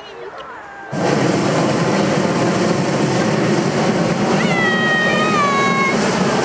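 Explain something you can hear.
A gas burner roars loudly overhead.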